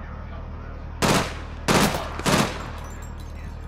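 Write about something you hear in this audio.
A pistol fires several loud shots.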